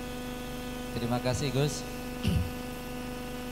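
An elderly man speaks briefly into a microphone.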